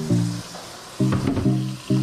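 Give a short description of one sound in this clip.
Tap water runs into a metal sink.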